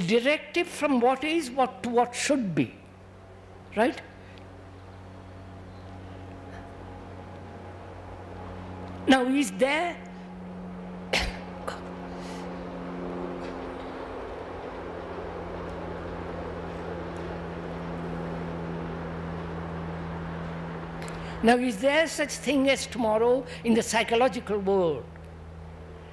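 An elderly man speaks slowly and thoughtfully into a microphone, with long pauses.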